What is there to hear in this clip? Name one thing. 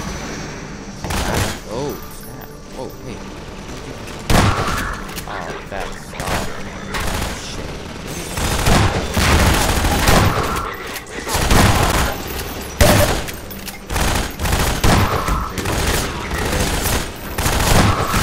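A shotgun fires loud, echoing blasts again and again.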